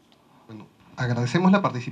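A man speaks into a microphone over a loudspeaker in a hall.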